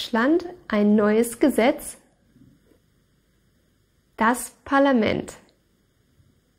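A young woman speaks clearly and calmly close to a microphone, in two short phrases.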